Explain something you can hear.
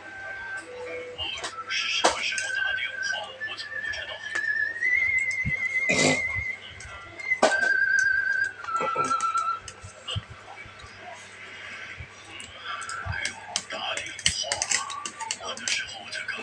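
A fork clinks and scrapes on a metal plate.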